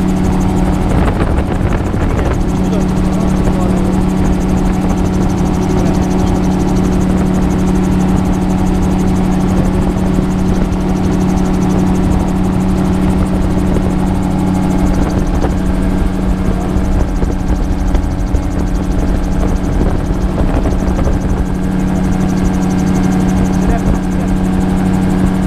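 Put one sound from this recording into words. An aircraft engine drones steadily and loudly close by.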